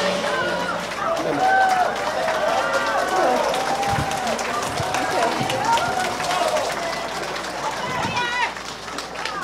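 A woman sings in a high, wavering voice on a stage, heard through loudspeakers in a large hall.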